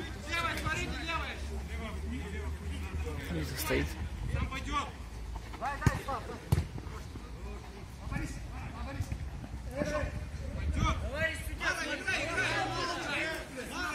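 Men shout to each other across an outdoor football pitch.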